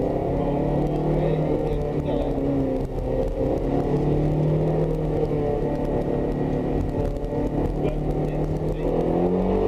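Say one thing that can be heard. A sports car engine roars loudly from inside the cabin, rising and falling in pitch as gears change.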